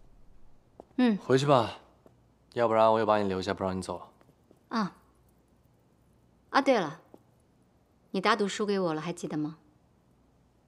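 A young woman speaks firmly nearby.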